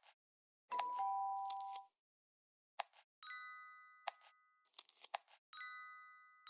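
Short game clicks and pops sound between the chimes.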